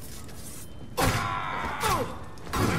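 Swords clash and scrape.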